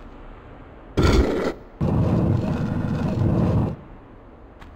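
A heavy stone door grinds open with a loud rumble.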